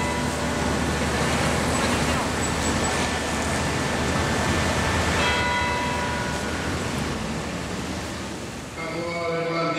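Car engines idle and hum in busy street traffic.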